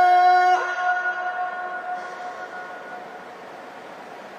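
A man chants a long, drawn-out note into a microphone, echoing through a large hall.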